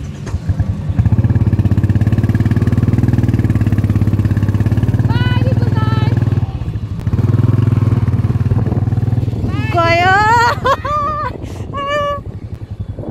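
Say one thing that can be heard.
A motorbike engine rumbles steadily close by.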